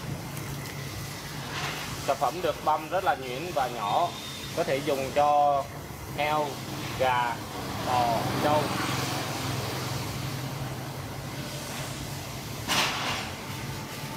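A chopping machine shreds plant stalks.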